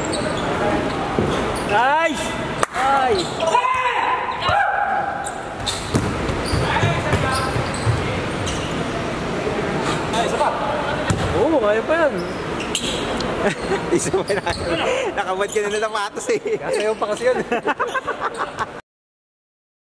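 A basketball bounces on a hardwood floor in a large echoing hall.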